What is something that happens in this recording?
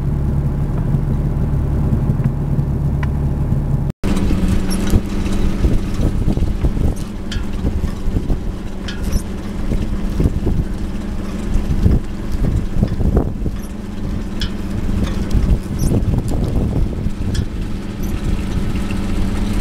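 A boat engine hums.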